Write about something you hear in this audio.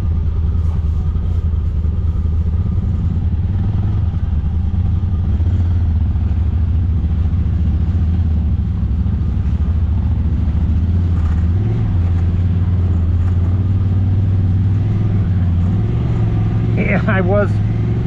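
An off-road vehicle's engine rumbles steadily close by.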